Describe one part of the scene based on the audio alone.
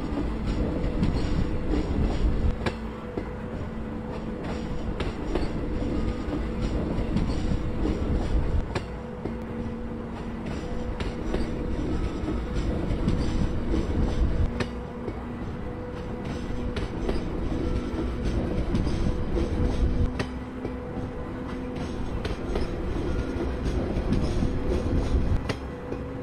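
A train rumbles steadily along the tracks, its wheels clicking over rail joints.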